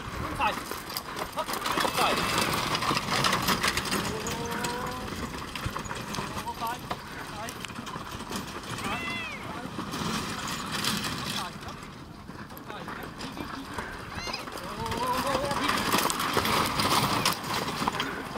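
Horses' hooves thud on soft ground as a carriage passes close by.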